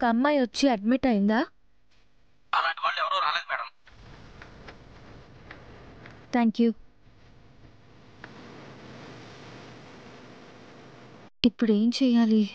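A young woman speaks anxiously into a phone, close by.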